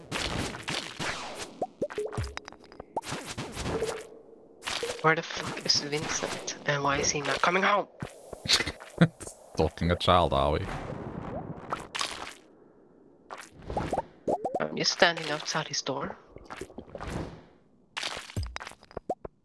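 Short video game sound effects click, thud and chime.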